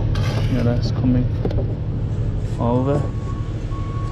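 A brick is set down with a scrape and a soft knock.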